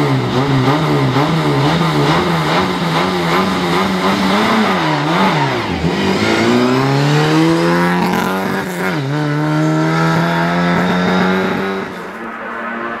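A rally car engine revs hard and roars away, shifting up through the gears.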